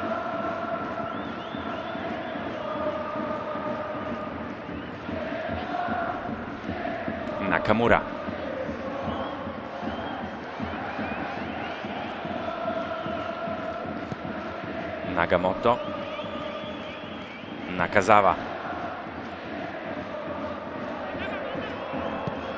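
A large stadium crowd chants and cheers steadily outdoors.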